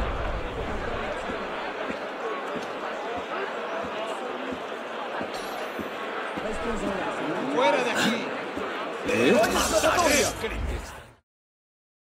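A crowd murmurs and chatters all around.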